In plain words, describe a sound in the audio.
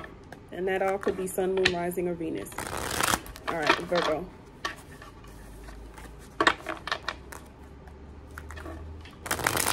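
Playing cards shuffle and riffle with a quick flutter.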